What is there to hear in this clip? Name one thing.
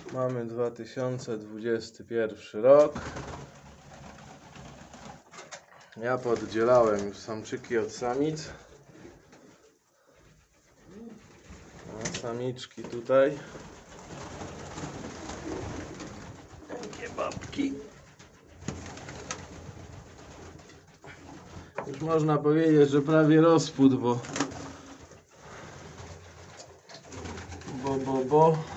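Domestic pigeons coo.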